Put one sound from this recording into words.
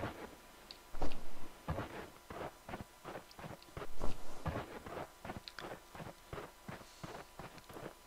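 Footsteps crunch steadily on rocky ground.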